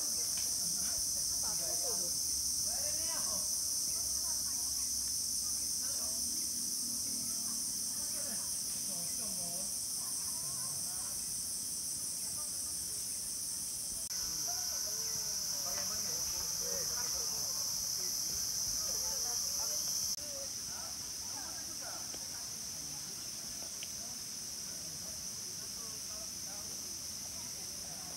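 Young women chat outdoors at a distance.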